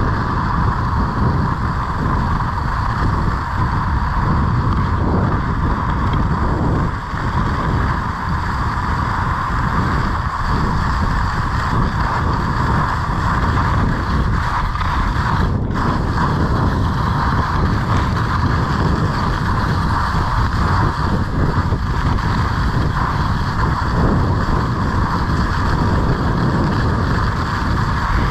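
Wind rushes and buffets loudly close by.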